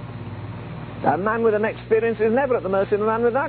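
An elderly man speaks steadily through a microphone.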